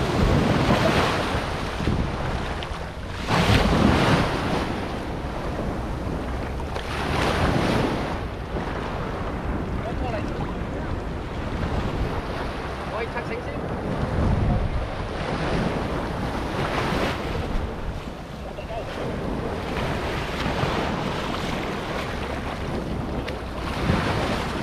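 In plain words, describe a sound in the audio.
Shallow water splashes and swirls around a man wading.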